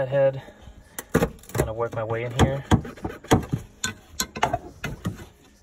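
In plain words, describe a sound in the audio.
A gear lever clunks and rattles as it is shifted.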